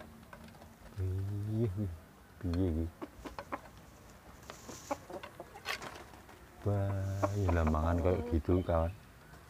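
Young roosters crow loudly close by.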